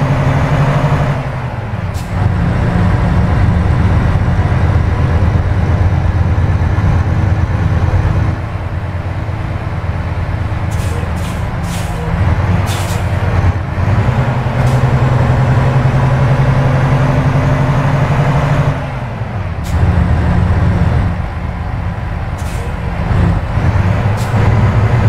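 A truck engine rumbles steadily, rising and falling as the gears shift.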